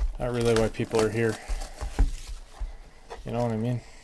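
A cardboard box lid is lifted open.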